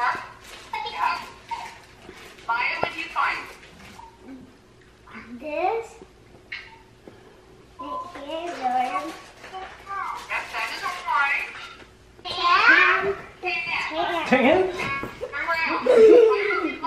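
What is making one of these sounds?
Young girls talk and laugh close by.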